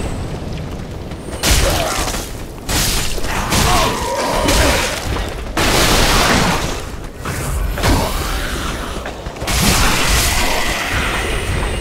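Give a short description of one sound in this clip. Swords clash and strike flesh in a fight.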